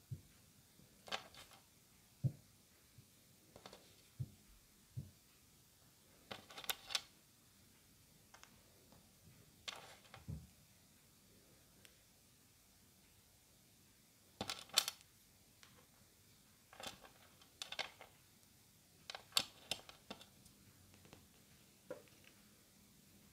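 Small hard candies click and rattle as they are picked up and set down.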